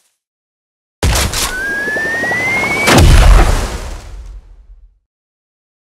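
Coins jingle and clatter in a rapid shower.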